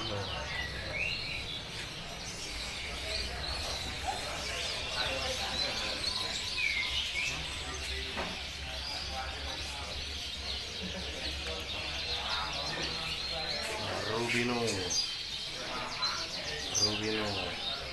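Many caged birds chirp and twitter nearby.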